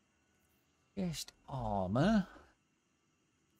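A man speaks briefly with animation into a close microphone.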